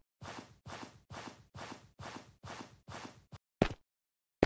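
A vine rustles in quick, even bursts as something climbs it.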